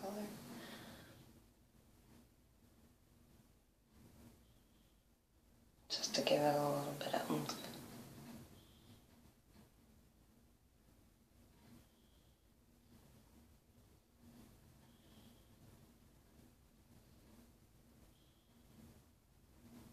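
A makeup brush softly brushes against skin.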